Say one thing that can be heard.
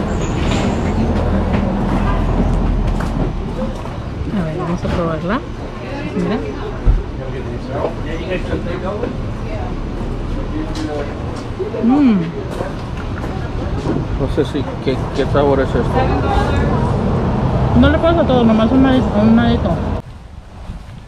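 People chat in the background.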